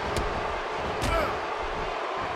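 A punch lands with a dull thud.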